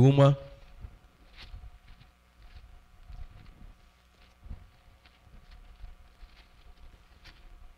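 Thin book pages rustle as they are turned.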